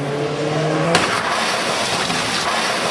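Two cars crash together with a loud metallic bang.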